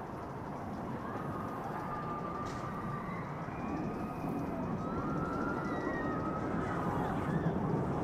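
Riders scream far off on a roller coaster.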